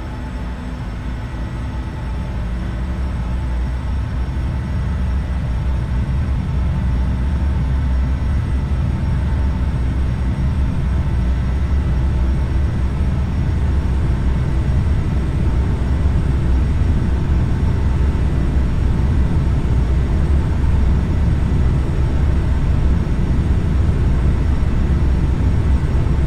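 Jet engines roar steadily and grow louder as an airliner speeds down a runway.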